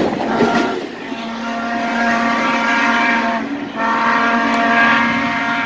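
A locomotive horn blows loud, long blasts while a train approaches.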